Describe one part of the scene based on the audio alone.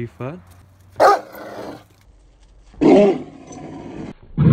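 A large dog barks loudly with a deep voice.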